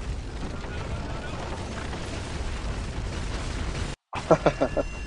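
Wooden planks creak and crash as scaffolding collapses.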